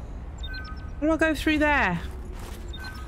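A young woman exclaims briefly into a close microphone.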